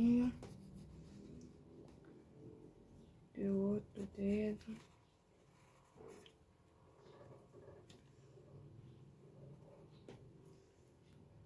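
A pen scratches softly on paper.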